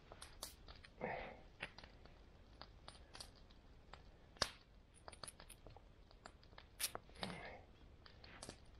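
Clothing rustles as a person moves.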